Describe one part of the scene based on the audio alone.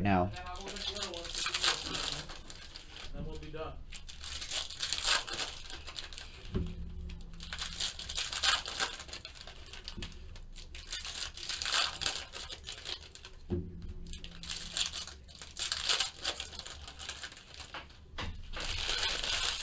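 Foil card wrappers crinkle and tear as hands open them.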